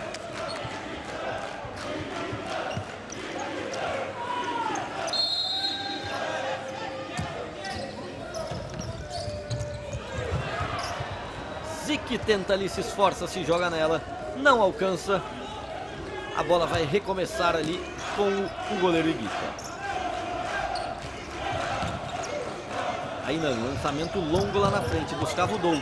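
A crowd roars in a large indoor arena.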